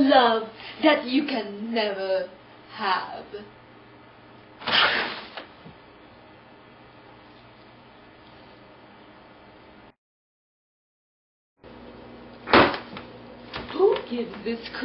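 A young woman speaks loudly and with animation close by.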